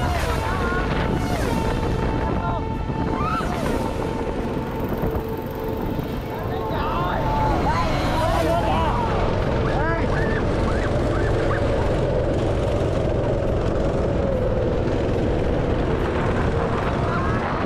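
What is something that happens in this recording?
Go-kart engines buzz and drone steadily outdoors.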